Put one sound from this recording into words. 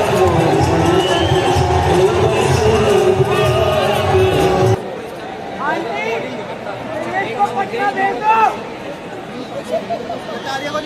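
Young men nearby shout and whistle with excitement.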